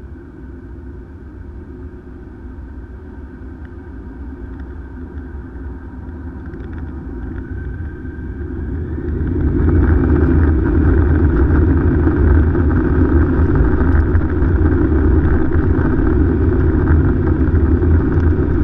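Jet engines roar from inside an airliner cabin, growing steadily louder and then surging.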